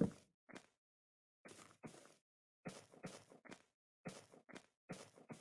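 Footsteps crunch over grass at a quick walking pace.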